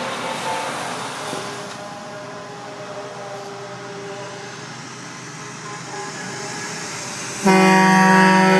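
A big truck engine rumbles as it drives past close by.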